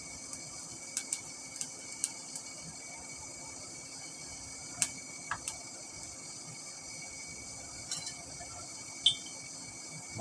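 Metal rods clink as they are moved in a fire.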